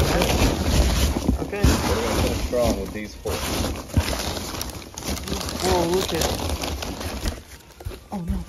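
Packing peanuts rustle and squeak as a hand digs through them.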